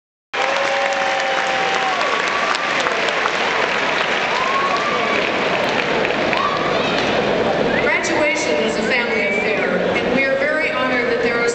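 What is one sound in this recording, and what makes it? A woman sings into a microphone, her voice echoing through a large hall.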